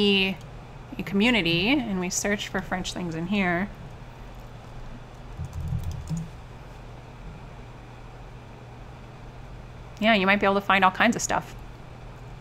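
A woman speaks calmly into a close microphone.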